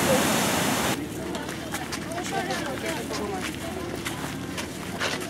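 Footsteps crunch on a sandy path.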